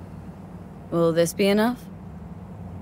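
A man answers briefly in a level voice.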